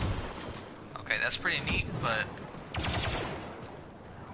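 A blaster rifle fires bursts of sharp, whining shots.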